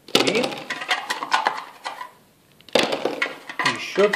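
Dice clatter in a metal tin.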